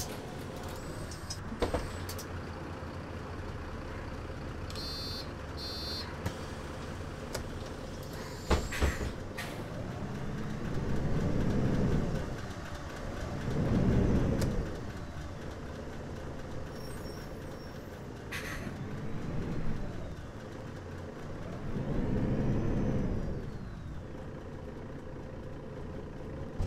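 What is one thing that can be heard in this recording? A bus engine hums steadily from inside the cab.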